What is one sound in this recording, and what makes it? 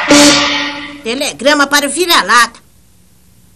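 A boy speaks brightly in a cartoon voice.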